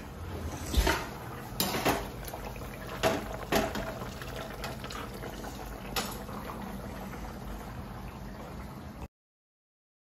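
A metal spoon stirs and scrapes against a pan.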